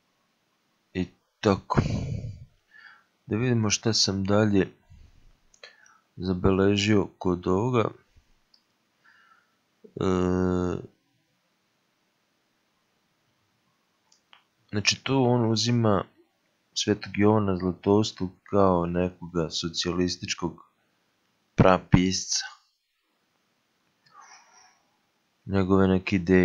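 A man sings in a deep voice in short phrases with pauses.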